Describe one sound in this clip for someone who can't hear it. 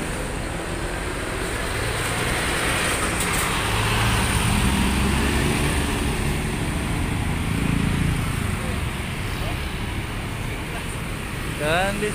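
Motorcycles pass by on a street.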